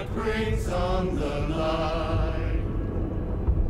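A man calls out tensely, heard through a loudspeaker.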